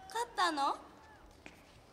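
A young woman asks something in a clear voice, close by.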